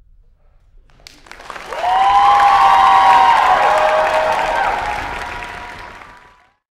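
An orchestra starts playing, loud and full, in a large hall, then gradually fades.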